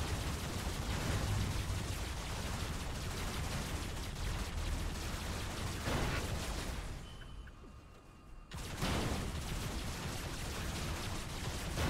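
A heavy machine engine rumbles low and steady.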